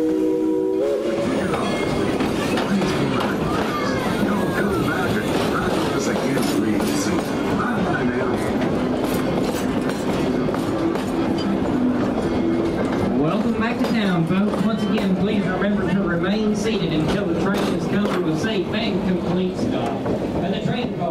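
A crowd of passengers chatters and calls out from the passing train.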